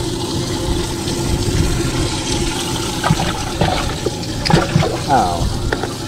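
Water splashes as a hand stirs it in a tank.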